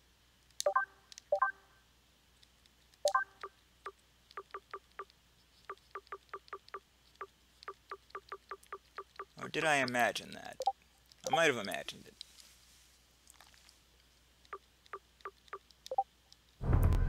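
Short menu blips click as selections change.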